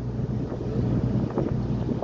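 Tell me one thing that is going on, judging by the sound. Water splashes and churns against the hull of a boat.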